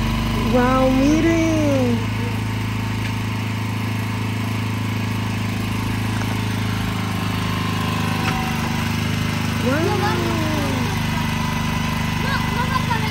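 A small engine runs with a steady rumbling hum.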